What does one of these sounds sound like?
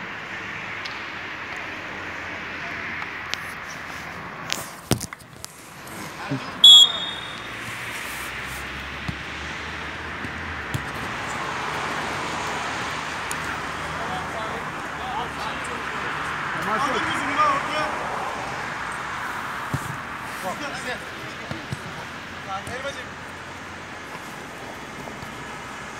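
Men shout and call out in the distance outdoors.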